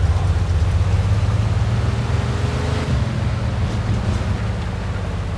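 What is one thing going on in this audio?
A car engine rumbles steadily as the car drives along.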